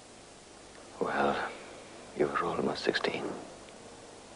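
A man speaks quietly and calmly nearby.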